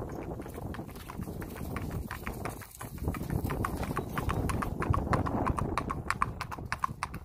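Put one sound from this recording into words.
A horse's hooves clop at a walk on hard ground.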